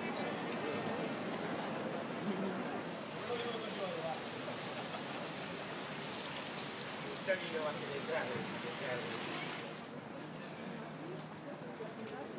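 A crowd of people chatters and walks about outdoors.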